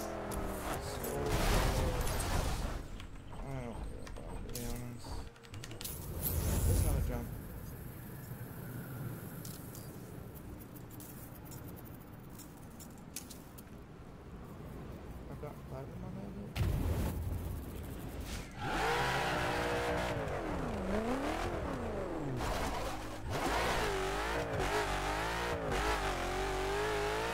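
A sports car engine roars and revs up and down.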